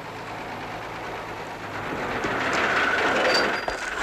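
A bus door rattles open.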